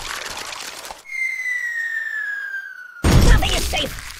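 A heavy weight whistles as it falls.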